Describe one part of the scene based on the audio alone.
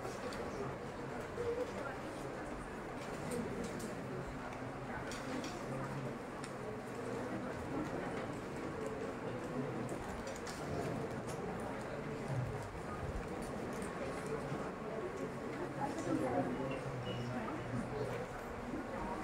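A pen taps and squeaks faintly on a board.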